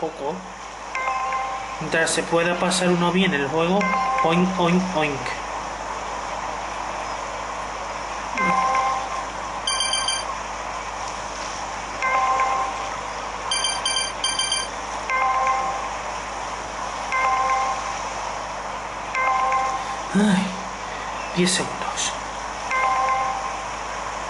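A bright chime sounds again and again as the plane passes through rings.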